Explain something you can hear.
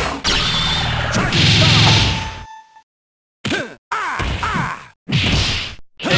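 Punches and blasts from a fighting game hit loudly in quick bursts.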